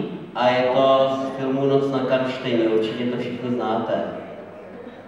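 A man sings into a microphone, heard through loudspeakers in an echoing hall.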